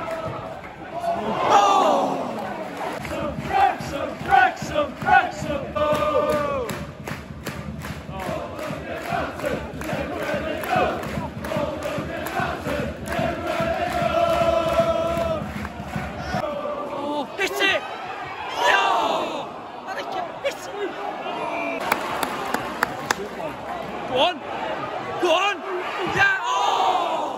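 Men close by shout and cheer.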